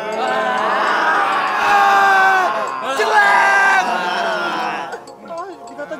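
A group of young men shout and chant loudly.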